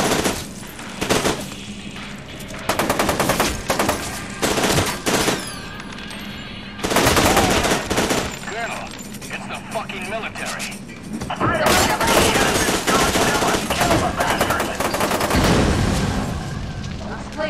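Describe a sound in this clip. Gunfire bursts out in loud, rapid volleys.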